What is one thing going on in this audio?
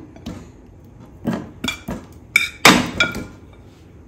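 Slabs of butter drop into a metal pan with soft thuds.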